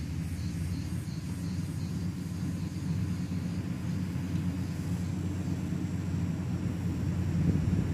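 A heavy diesel engine rumbles steadily close by, growing louder as the machine approaches.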